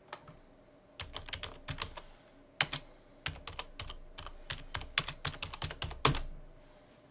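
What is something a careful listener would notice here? Keys clack quickly on a keyboard.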